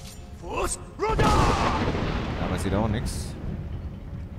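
A magic blast bursts with a rushing roar.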